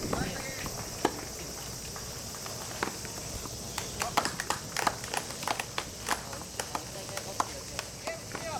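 Tennis balls are struck with rackets, making sharp pops.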